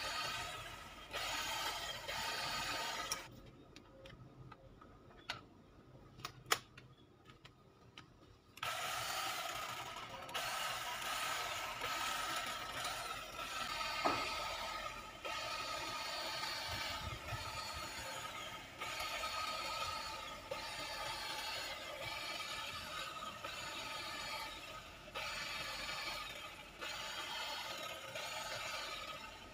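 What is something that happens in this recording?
An electric hedge trimmer buzzes steadily, pausing briefly now and then.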